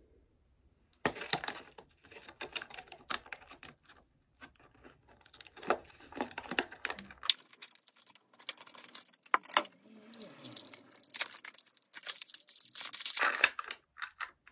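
Plastic packaging crinkles and rustles in a pair of hands.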